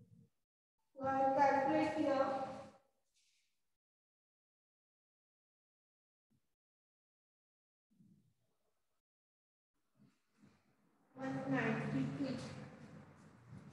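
A woman speaks aloud.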